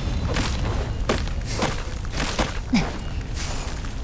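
Magic blasts burst and crackle in quick succession.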